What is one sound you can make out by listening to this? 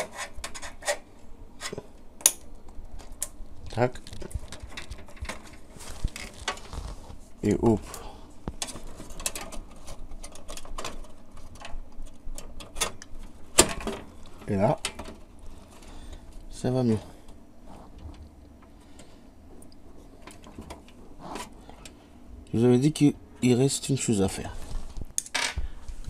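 Plastic parts click and rattle as cables are handled up close.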